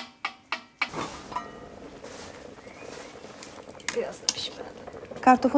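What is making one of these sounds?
Water bubbles and boils in a pot.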